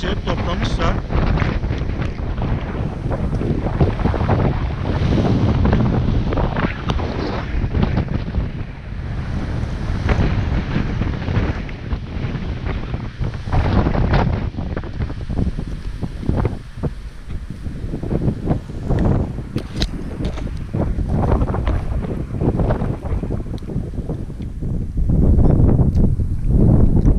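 Strong wind buffets and roars across the microphone outdoors.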